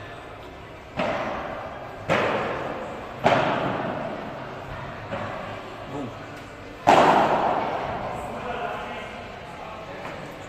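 Padel rackets strike a ball with sharp pops that echo through a large hall.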